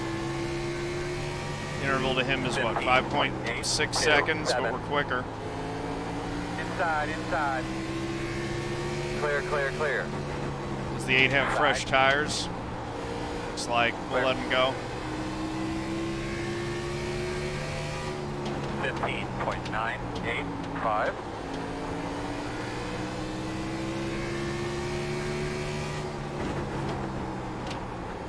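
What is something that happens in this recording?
A racing car engine drones steadily, rising and falling in pitch.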